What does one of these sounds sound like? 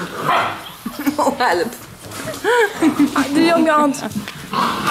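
Puppies whimper and yelp in high little cries.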